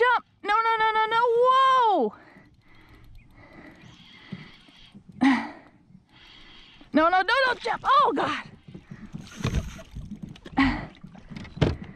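Small waves lap against the side of a kayak.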